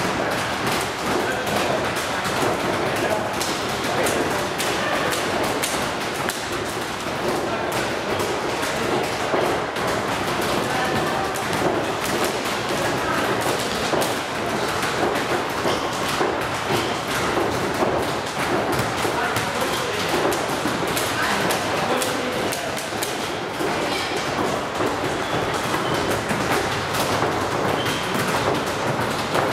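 Sneakers squeak and patter on a hard floor.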